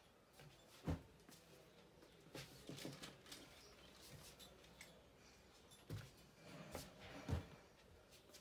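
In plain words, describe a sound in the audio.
Objects thump softly.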